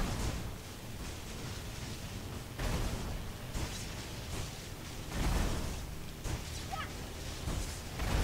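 Magic spells crackle and burst in short bursts.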